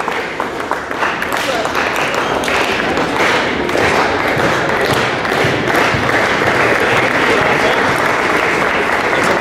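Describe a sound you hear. A crowd cheers and claps loudly in a large echoing gym.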